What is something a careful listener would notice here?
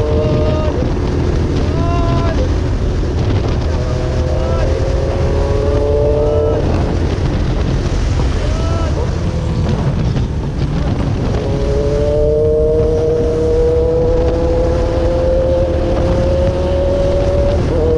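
A motorcycle engine hums steadily and rises in pitch as it speeds up.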